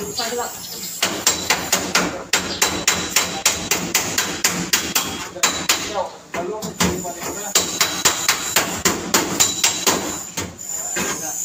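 A hammer taps rapidly on a metal panel.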